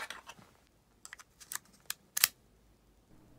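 Small plastic clicks sound as a key slides into a key fob.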